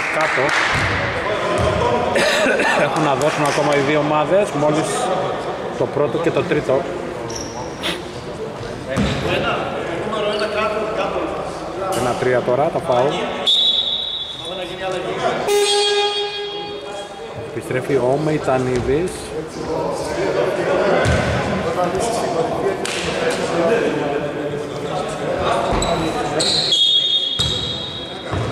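Men call out and talk across a large echoing hall.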